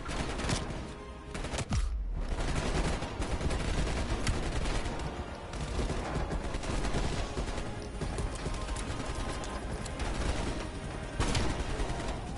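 Gunshots fire in short bursts, loud and close.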